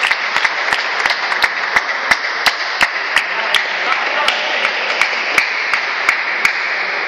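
Ping-pong balls click sharply and quickly on tables and paddles in a large echoing hall.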